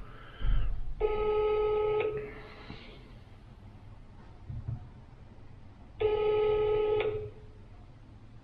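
A phone plays short electronic tones.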